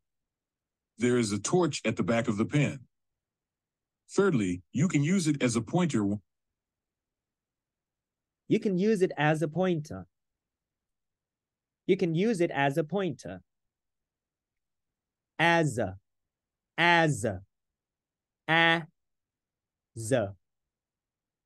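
A young man speaks calmly and clearly through a microphone, in short phrases with pauses.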